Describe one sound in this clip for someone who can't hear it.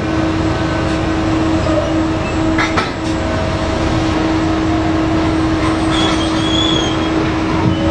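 A heavy dump truck's engine rumbles nearby.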